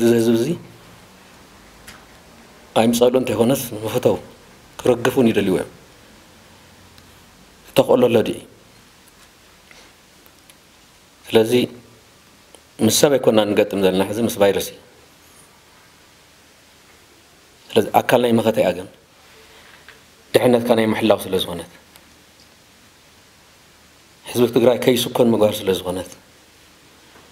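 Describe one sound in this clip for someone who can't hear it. A man speaks calmly into a microphone, in short phrases with long pauses.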